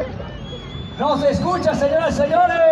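A crowd shouts and cheers loudly outdoors.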